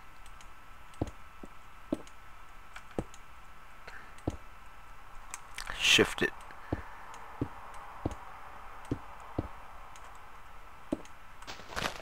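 Footsteps thud softly on grass and wooden planks, one step at a time.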